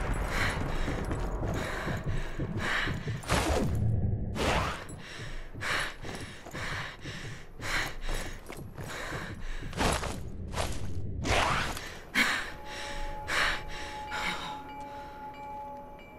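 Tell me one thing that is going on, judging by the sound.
Footsteps shuffle softly on a hard floor.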